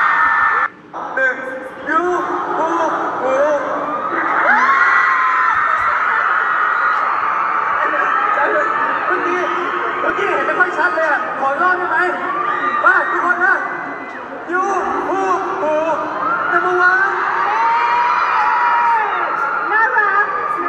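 Young men sing into microphones over loudspeakers in a large echoing hall.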